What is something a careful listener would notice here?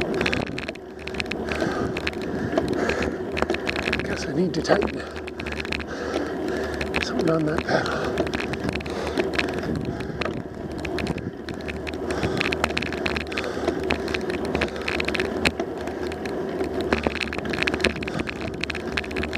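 Tyres roll steadily over smooth asphalt.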